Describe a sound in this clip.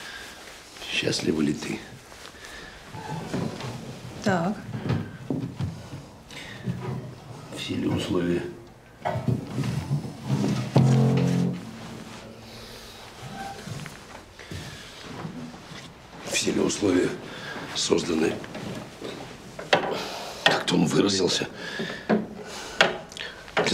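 A man speaks calmly and closely.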